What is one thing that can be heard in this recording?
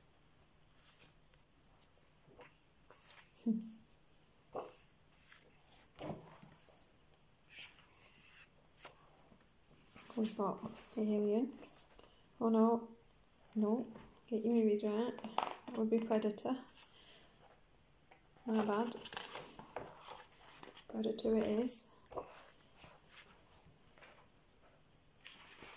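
Paper pages rustle and flip as a book's pages are turned.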